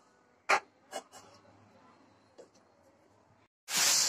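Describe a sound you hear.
A glass lid clanks onto a pan.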